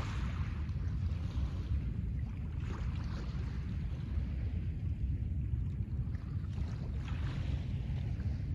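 Small waves wash gently onto a pebble shore.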